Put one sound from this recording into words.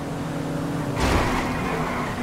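Tyres screech as a car skids sideways.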